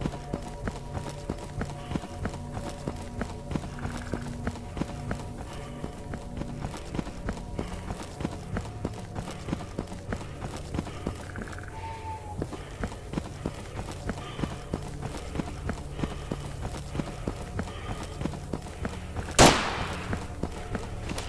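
Footsteps crunch quickly through snow at a running pace.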